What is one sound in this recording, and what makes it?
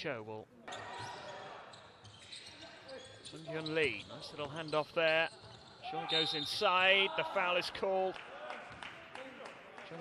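Basketball players' sneakers squeak on a hardwood court.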